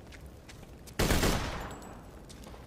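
A rifle fires a loud, booming shot that echoes away.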